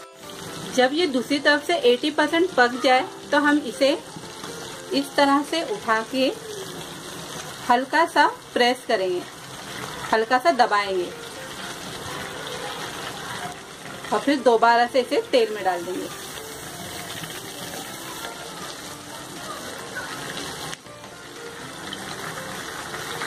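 Oil sizzles and bubbles steadily as food fries.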